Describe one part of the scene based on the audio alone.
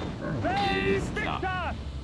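A fiery spell bursts and crackles.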